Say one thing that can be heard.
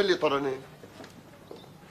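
A young man calls out loudly.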